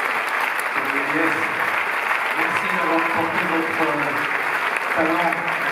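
A man speaks into a microphone over a loudspeaker, heard in a large hall.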